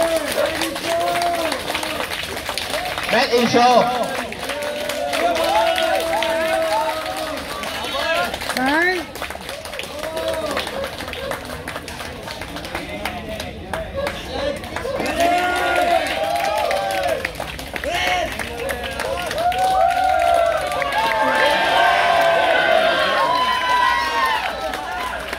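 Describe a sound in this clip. A crowd of men and women chatters and calls out nearby, outdoors.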